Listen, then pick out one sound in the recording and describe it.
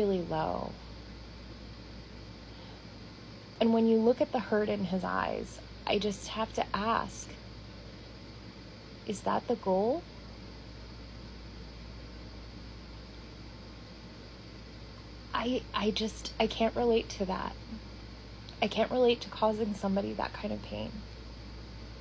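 A young woman talks close up with animation, pausing between phrases.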